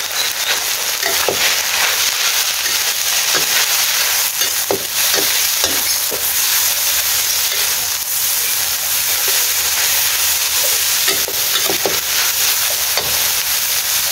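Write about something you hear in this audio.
A metal spatula scrapes and clanks against a wok.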